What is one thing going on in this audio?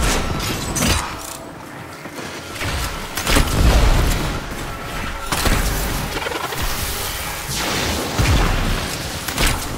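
Gunfire and energy blasts crackle rapidly.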